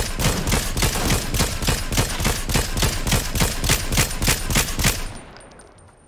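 An automatic rifle fires rapid shots.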